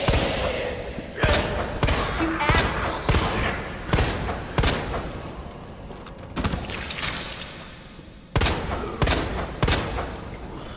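Pistol shots ring out loudly one after another.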